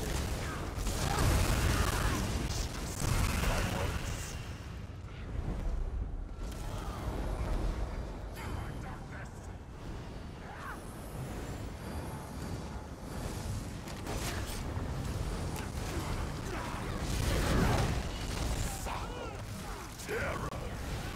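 Magic blasts whoosh and zap.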